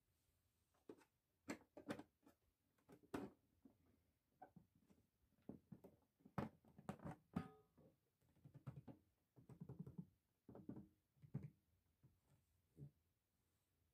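Fingers tap and brush against a toy chest lid.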